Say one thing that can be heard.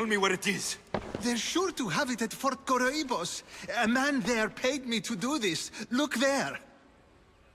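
An elderly man speaks nervously.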